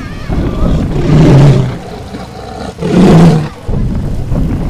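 A large beast roars loudly and deeply.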